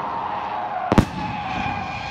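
A firework bursts with a sharp bang overhead.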